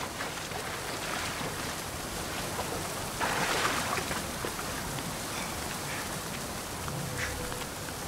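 A waterfall splashes and rushes steadily.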